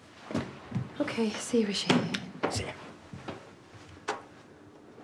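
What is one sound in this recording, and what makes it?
A woman speaks sharply.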